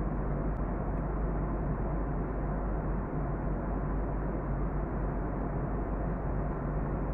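A jet engine roars steadily, heard from inside an airliner cabin.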